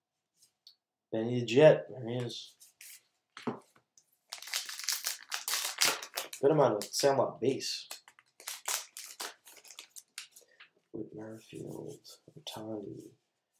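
Trading cards rustle and slide as they are shuffled.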